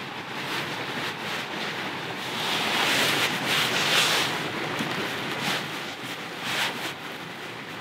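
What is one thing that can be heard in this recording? Bootlaces rustle as they are pulled tight.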